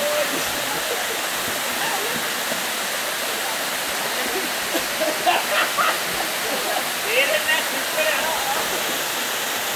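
Swimmers call out to each other from a distance.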